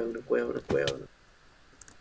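Dirt blocks break with a dull crunch.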